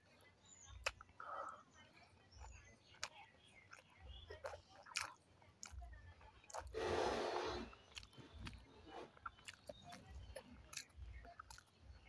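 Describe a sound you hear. A woman chews and smacks her lips close up, with wet mouth sounds.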